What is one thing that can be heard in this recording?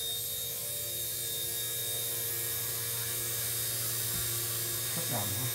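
A small model helicopter's electric motor whines steadily as its rotor spins.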